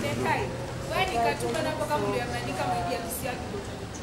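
A young woman sings loudly from close by.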